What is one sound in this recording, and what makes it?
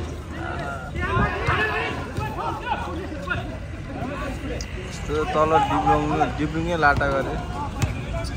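Spectators shout and cheer from nearby.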